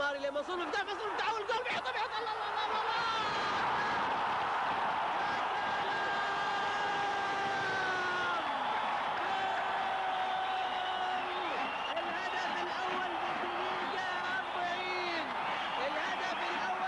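A large crowd cheers and roars loudly in a stadium.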